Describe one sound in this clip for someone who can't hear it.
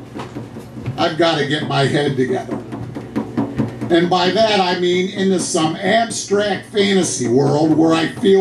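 A man sings loudly into a microphone.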